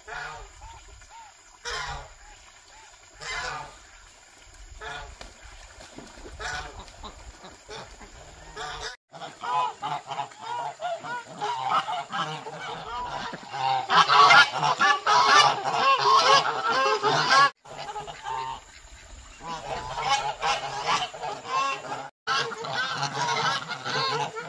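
Geese and ducks honk and quack loudly on the water.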